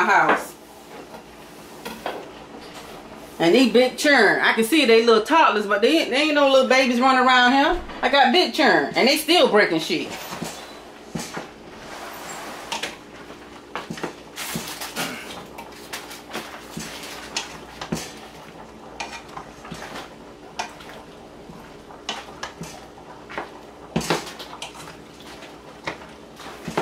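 Water simmers and bubbles in a pot.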